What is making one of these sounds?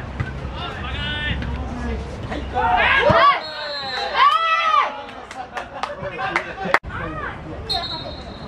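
Young men shout loudly across an open sports field.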